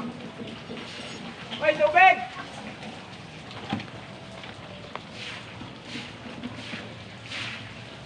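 A shovel scrapes on a concrete floor.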